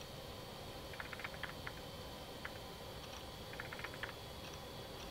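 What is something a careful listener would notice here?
Fingers tap quickly on a keyboard.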